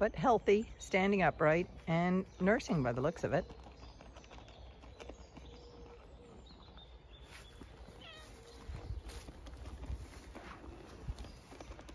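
A sheep munches feed from a bucket.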